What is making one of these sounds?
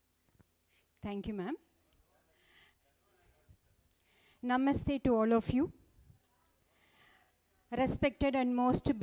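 A woman speaks calmly through a microphone in an echoing hall.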